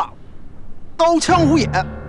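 A middle-aged man speaks in a low, threatening voice close by.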